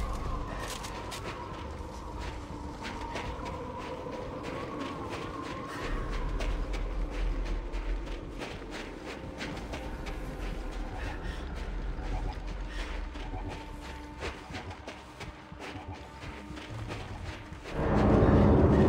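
Heavy boots crunch on snow in steady footsteps.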